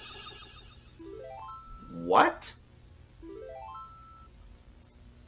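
Short game menu tones chime and rise.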